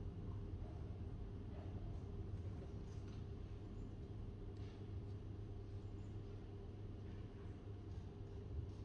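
Fingers tap softly on a laptop keyboard.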